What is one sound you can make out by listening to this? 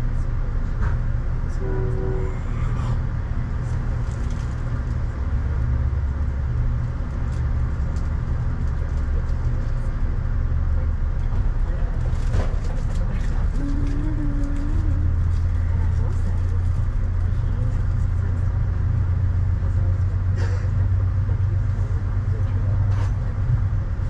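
Rain patters steadily on a car window.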